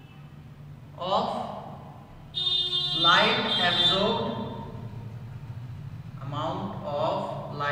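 A man speaks calmly, like a teacher explaining, close by.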